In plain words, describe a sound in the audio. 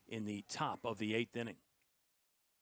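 A man speaks briefly.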